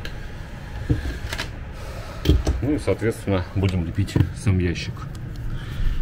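Tools clatter on a wooden table.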